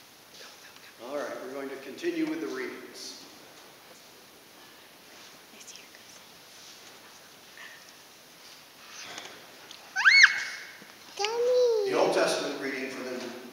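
An older man speaks calmly in an echoing hall.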